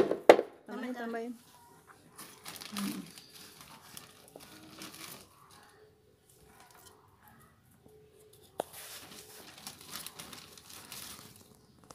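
Fingers rustle in potting soil.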